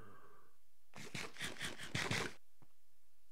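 Someone eats with quick crunchy bites.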